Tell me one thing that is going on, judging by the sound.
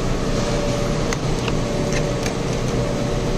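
Plastic packaging crinkles under a hand.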